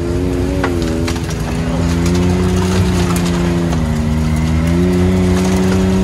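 Plastic panels rattle and clatter over bumps.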